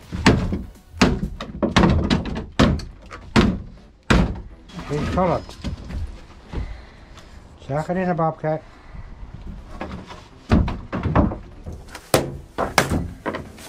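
A metal bar bangs and pries against wood.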